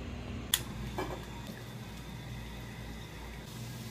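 Water pours into a metal pot and splashes.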